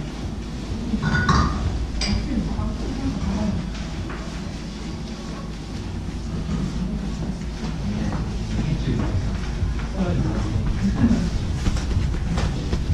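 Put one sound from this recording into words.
Several adults chatter in the distance in a room.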